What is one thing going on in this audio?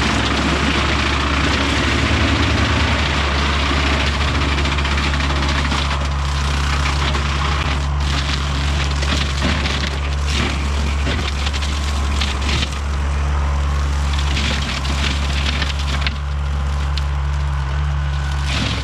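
A mower shreds dry stalks with crackling bursts.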